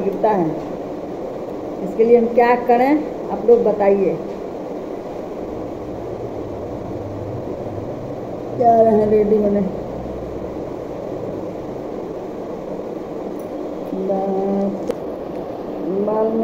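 A middle-aged woman talks close by in a calm, chatty voice.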